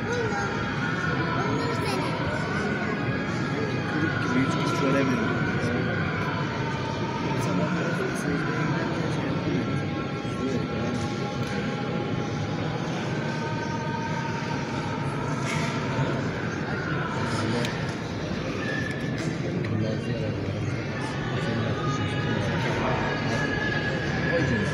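A large choir of men chants in unison, echoing through a vast hall.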